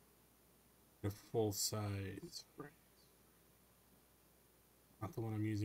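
Wooden planks knock and clatter as they are dropped.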